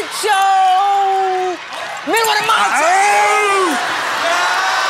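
A young man shouts with excitement.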